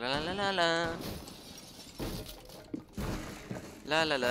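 Wooden boards smash and splinter.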